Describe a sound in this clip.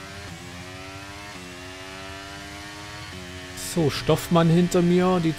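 A racing car engine whines at high revs, dropping in pitch with each gear change.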